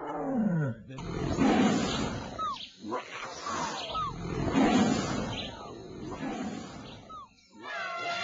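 A man laughs heartily close to a microphone.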